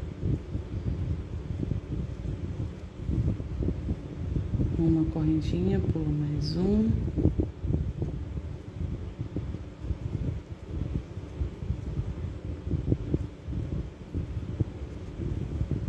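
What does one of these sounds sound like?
A crochet hook pulls yarn through stitches with a soft rustle.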